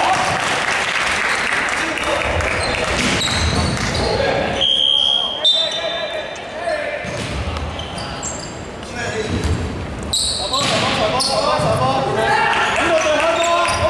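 Sneakers squeak on a hardwood court in a large echoing hall.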